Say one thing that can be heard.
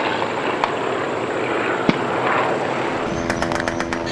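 Several propeller biplanes drone overhead.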